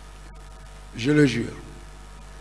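A man speaks a short phrase loudly into a microphone.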